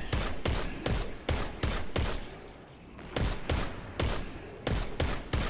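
A rifle fires single shots in quick succession, each shot booming and echoing.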